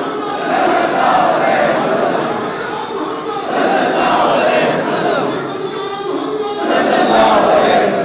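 A crowd of men chants loudly together, close by, in a large echoing hall.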